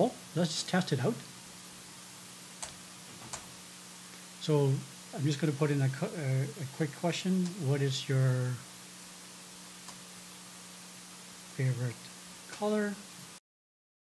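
A middle-aged man speaks calmly and close into a microphone, in short bursts with pauses.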